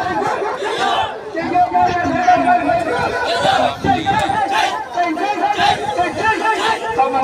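A crowd of men chatter and call out loudly outdoors.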